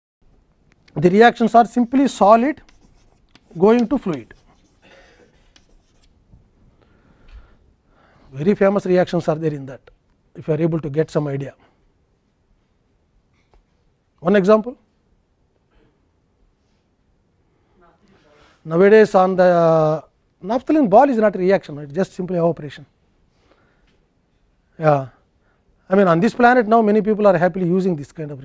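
An elderly man lectures calmly into a clip-on microphone, with pauses.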